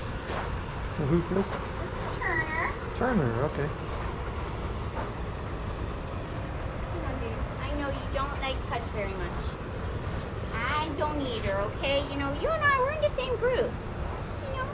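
Dogs whine and bark close by.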